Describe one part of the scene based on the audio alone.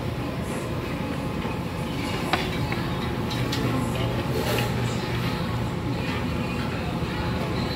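Metal tongs clink and scrape through noodles.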